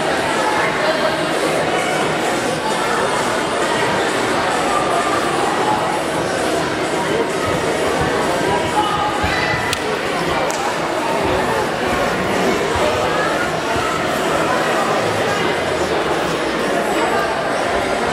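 Bare feet shuffle and thump on foam mats.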